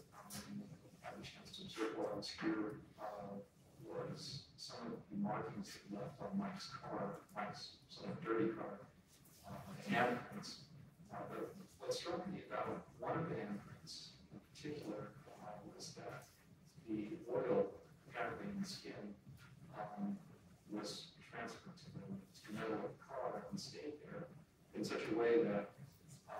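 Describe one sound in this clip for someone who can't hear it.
A man speaks steadily into a microphone, heard through loudspeakers in a large echoing hall.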